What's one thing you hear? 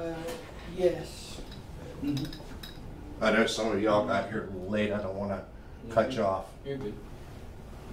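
An older man lectures in a room.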